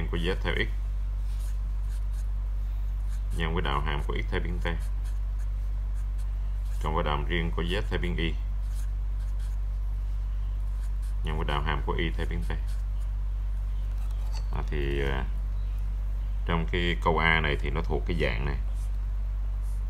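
A marker pen squeaks and scratches across paper.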